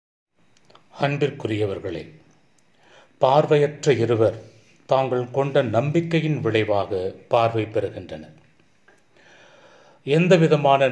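A man speaks steadily into a microphone, as if giving a sermon.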